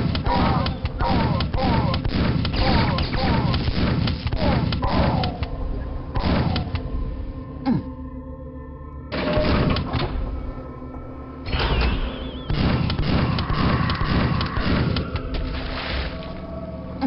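A shotgun fires in quick, loud blasts.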